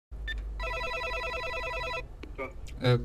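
A door intercom gives out a steady electronic beep.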